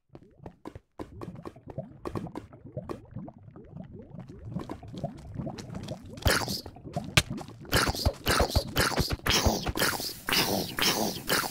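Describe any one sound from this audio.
Lava bubbles and pops nearby.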